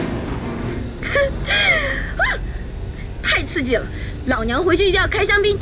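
A young woman speaks cheerfully close by.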